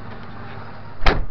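A door thuds shut loudly.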